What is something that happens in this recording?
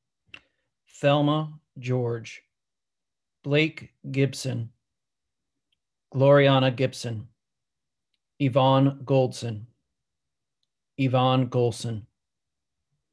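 A man reads out slowly and calmly through a microphone, pausing between short phrases.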